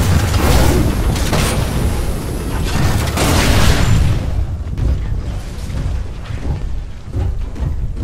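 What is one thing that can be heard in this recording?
Flames whoosh and crackle.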